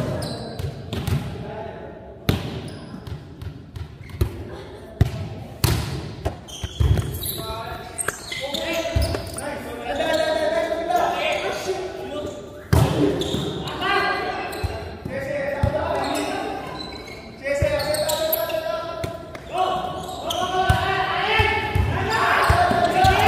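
A volleyball is struck with sharp thuds in a large echoing hall.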